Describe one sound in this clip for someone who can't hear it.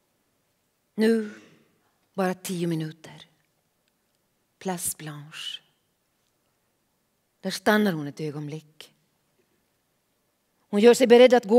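A middle-aged woman reads aloud calmly into a microphone, with pauses between phrases.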